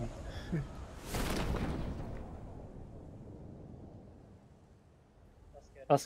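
Wind rushes past during a parachute descent.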